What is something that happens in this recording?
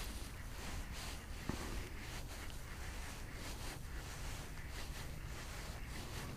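A fishing reel whirs softly as its handle is turned.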